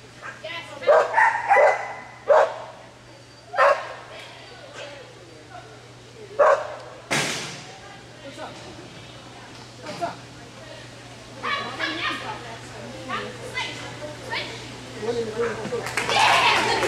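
A young man calls out commands with energy in a large echoing hall.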